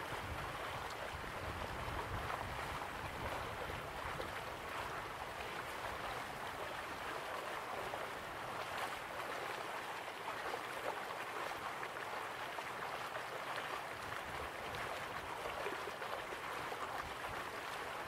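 A crowd murmurs softly in the distance.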